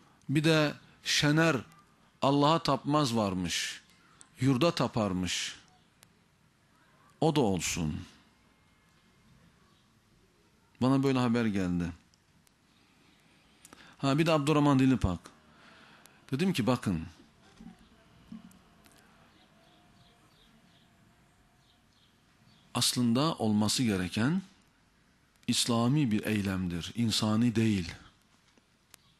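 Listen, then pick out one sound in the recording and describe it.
A man speaks with animation into a microphone, pausing often between phrases.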